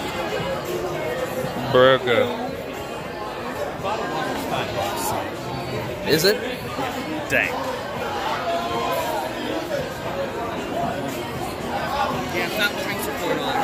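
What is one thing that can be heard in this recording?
Many people chatter in a busy room.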